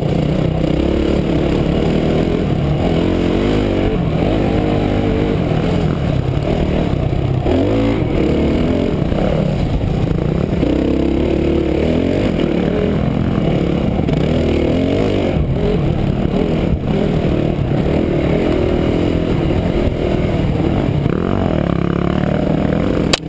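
A dirt bike engine roars up close, revving up and down.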